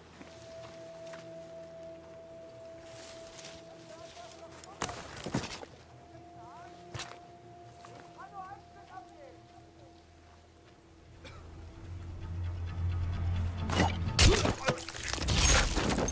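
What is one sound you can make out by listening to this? Footsteps crunch over dirt and gravel.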